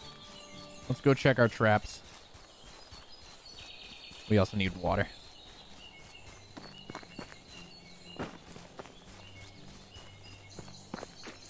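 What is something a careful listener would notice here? Footsteps crunch on leaves and undergrowth.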